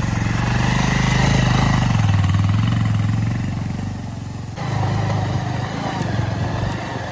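A motorcycle engine throbs and revs.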